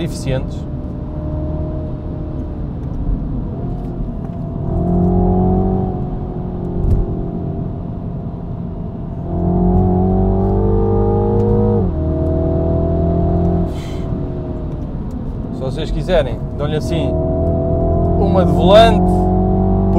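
Wind rushes past an open car roof.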